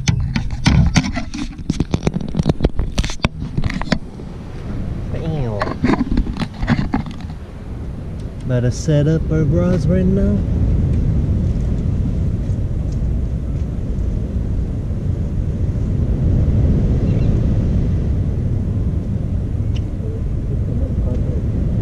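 Wind blows steadily outdoors, rumbling across a microphone.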